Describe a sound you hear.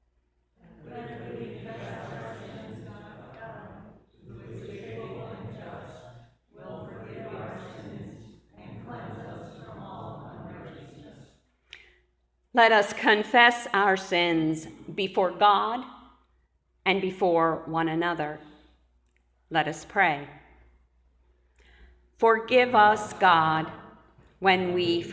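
An older woman speaks calmly into a microphone in a large echoing room.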